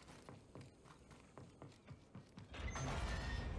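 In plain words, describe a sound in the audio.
Footsteps run quickly across a hollow metal floor.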